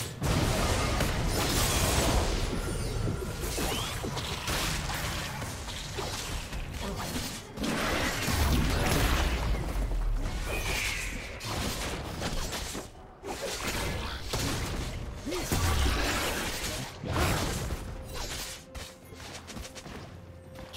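Magic spells crackle and boom in a fast battle between game characters.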